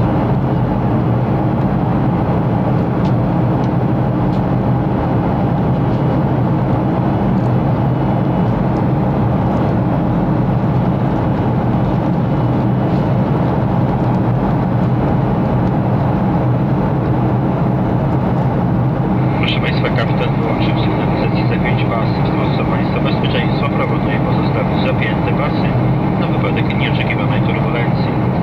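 Jet engines roar steadily in a loud, low rumble.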